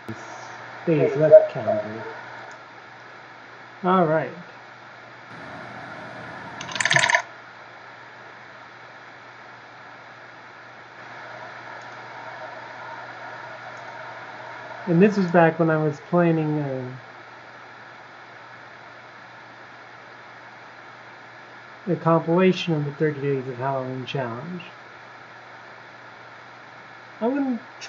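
A young man talks calmly into a nearby microphone, in short bursts with pauses.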